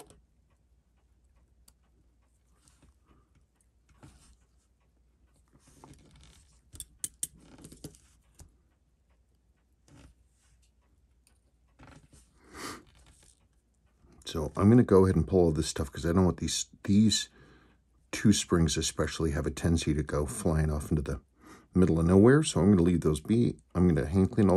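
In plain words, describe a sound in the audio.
Metal tweezers tick and scrape against small metal watch parts.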